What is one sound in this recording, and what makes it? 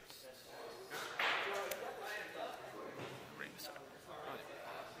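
Playing cards slide and tap softly on a tabletop.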